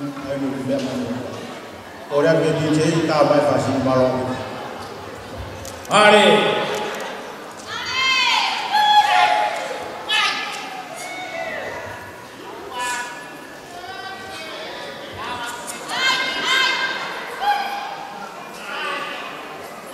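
Men and women talk and call out in a large echoing hall.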